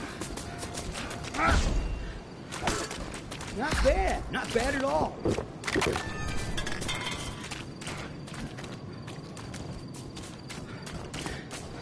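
Footsteps crunch quickly over rough ground.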